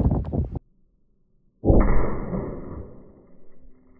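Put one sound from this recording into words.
A bullet strikes a target with a sharp, loud crack.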